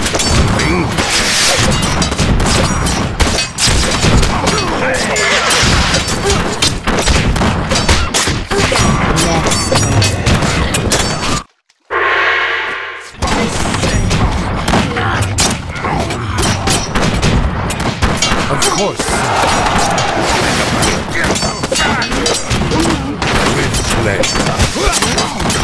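Swords clash and clatter in a busy battle.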